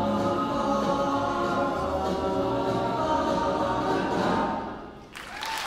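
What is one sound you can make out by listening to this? A large choir sings together in a big echoing hall.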